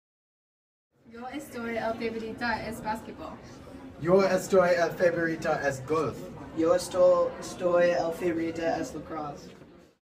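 Teenage boys talk and read out aloud in an echoing hallway.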